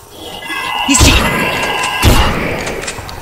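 A shotgun fires twice with loud blasts.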